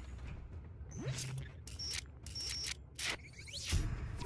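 Short electronic bleeps and chimes sound in quick succession.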